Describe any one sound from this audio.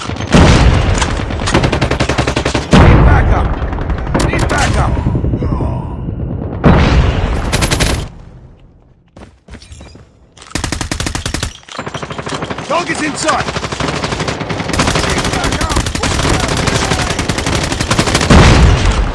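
Rapid automatic gunfire rattles in bursts.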